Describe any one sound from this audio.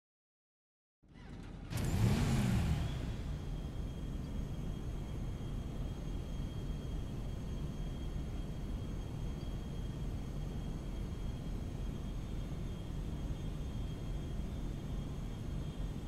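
A motorcycle engine starts up and idles with a low steady rumble.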